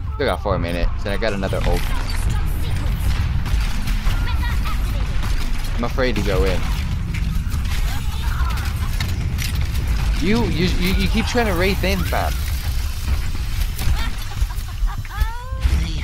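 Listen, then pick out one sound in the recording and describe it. Gunfire and explosions from a game boom and crackle.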